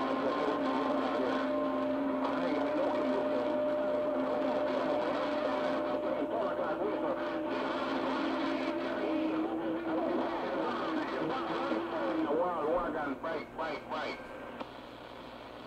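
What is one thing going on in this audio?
A radio plays a garbled, warbling transmission through crackling static.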